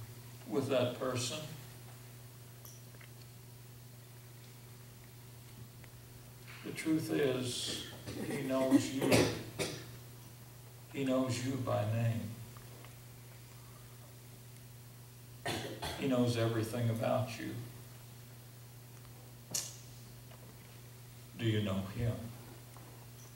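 An older man speaks slowly into a microphone, in short phrases with long pauses.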